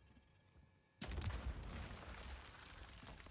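A grenade explodes with a loud boom nearby.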